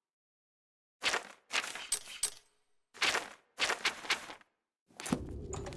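Soft menu clicks tick in quick bursts.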